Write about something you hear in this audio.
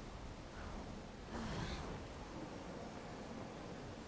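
Large wings flap in a rush of air.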